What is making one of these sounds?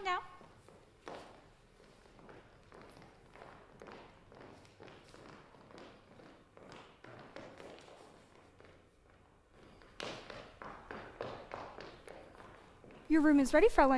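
Footsteps patter across a wooden stage.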